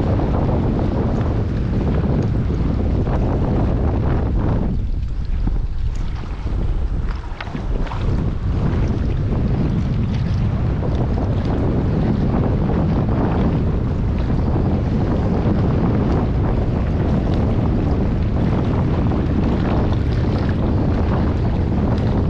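Small waves lap against rocks at the shore.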